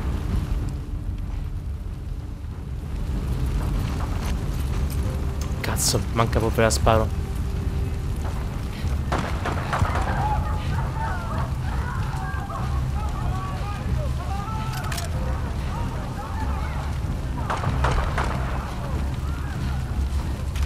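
A fire roars and crackles nearby.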